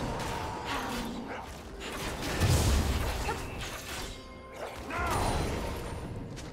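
Blows thud and clash in combat.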